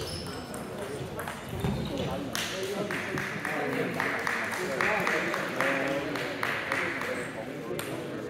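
Men talk nearby in a large echoing hall.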